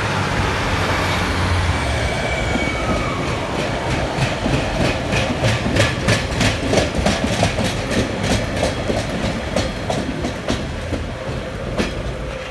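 A diesel train rumbles past close by.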